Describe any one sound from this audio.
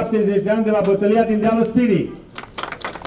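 A group of men sing together outdoors.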